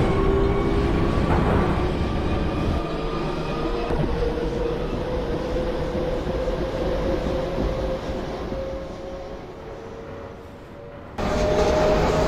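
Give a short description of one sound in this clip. A subway train's motor whines, rising slowly in pitch.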